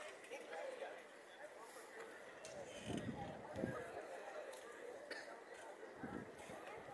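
A crowd of men and women murmur and talk quietly at a distance outdoors.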